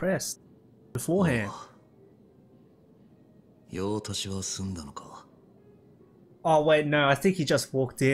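A second man speaks in a low, calm voice, close by.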